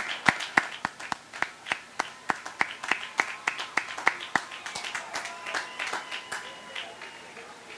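A large crowd claps together in a steady, quick rhythm outdoors.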